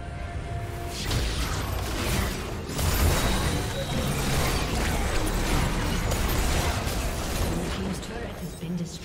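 Magic spells crackle and burst in a loud fight.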